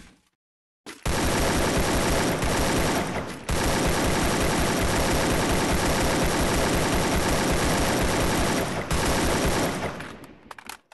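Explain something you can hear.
Rapid gunshots fire in a video game.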